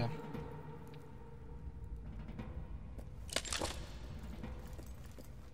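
Heavy footsteps thud on stone in an echoing hall.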